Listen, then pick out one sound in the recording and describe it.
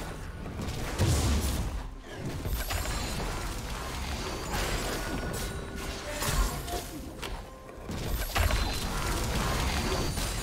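Heavy game attacks thump and clang.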